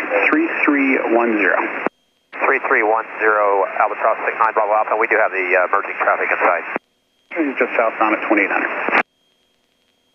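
A man speaks calmly over a crackly headset intercom.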